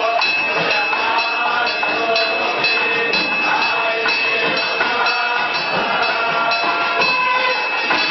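An elderly man chants steadily nearby.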